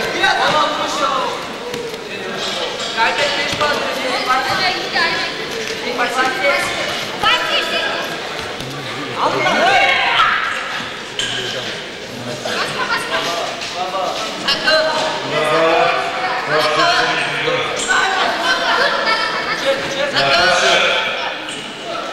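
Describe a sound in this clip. A crowd of men chatters and calls out in a large echoing hall.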